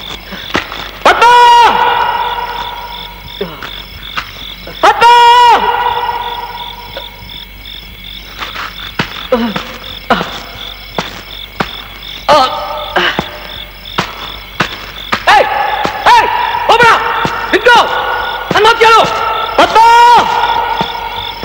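A man wails loudly in long, rising and falling cries.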